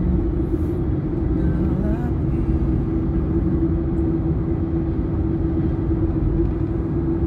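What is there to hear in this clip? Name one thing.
A car engine hums steadily while driving on a highway.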